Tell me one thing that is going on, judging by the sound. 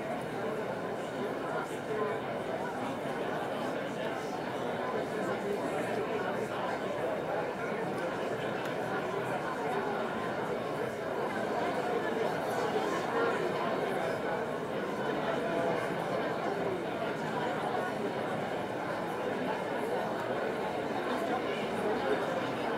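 A large audience chatters and murmurs in an echoing hall.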